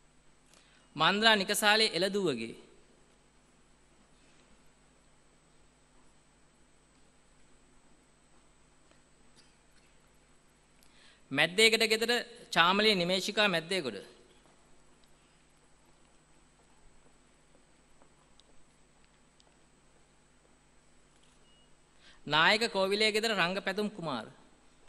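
A man reads out briefly over a loudspeaker in a large hall, with pauses between.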